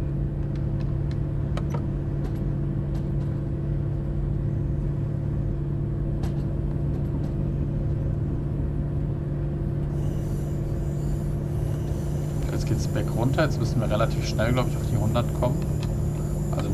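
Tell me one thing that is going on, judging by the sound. A diesel railcar's engine drones as it runs along the track.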